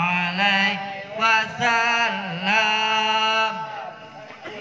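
A man sings loudly through a loudspeaker in an echoing space.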